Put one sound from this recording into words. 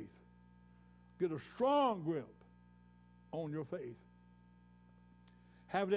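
An elderly man preaches forcefully in short bursts through a microphone and loudspeakers.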